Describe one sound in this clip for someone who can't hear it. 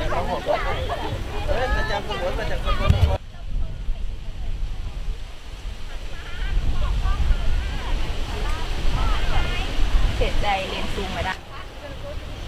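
Wind buffets the microphone in low gusts.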